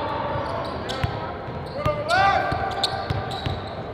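Sneakers squeak sharply on a hard court floor.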